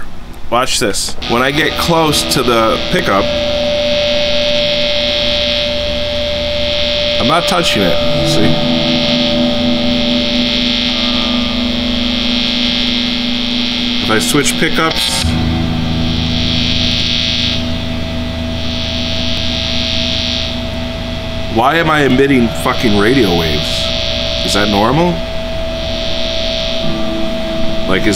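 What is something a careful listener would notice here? An electric guitar plays sustained, distorted notes.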